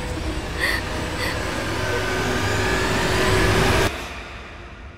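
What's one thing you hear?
A woman sobs and cries in distress close by.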